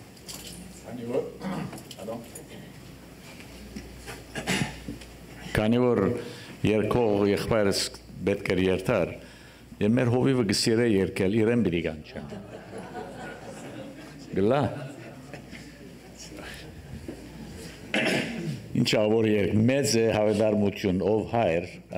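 An elderly man sings through a microphone and loudspeakers in a large room.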